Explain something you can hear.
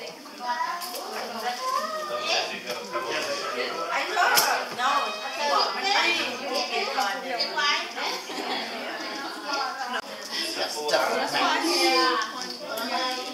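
A young child babbles.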